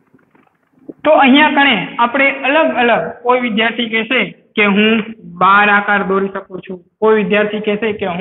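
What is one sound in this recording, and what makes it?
A man speaks loudly and steadily close by.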